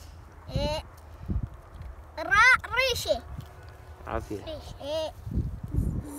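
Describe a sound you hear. A young child talks nearby in a high, lively voice.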